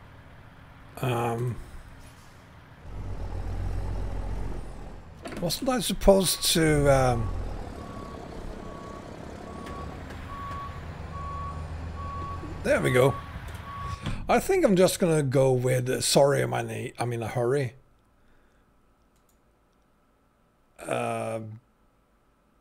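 A man speaks casually and with animation, close to a microphone.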